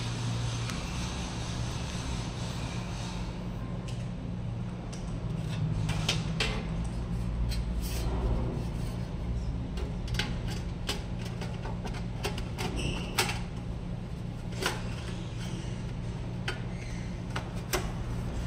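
Plastic clicks and cables rattle as a man handles electronic equipment.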